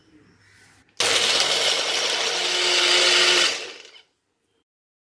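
A blender whirs loudly.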